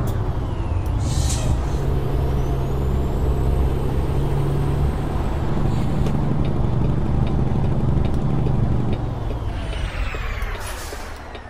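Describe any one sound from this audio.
A truck engine drones steadily, easing off near the end.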